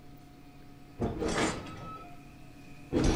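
A heavy metal gate creaks open.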